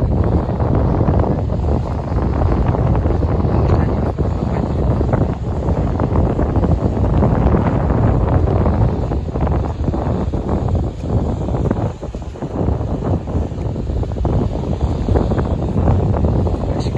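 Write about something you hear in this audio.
Wind blows hard and gusts outdoors.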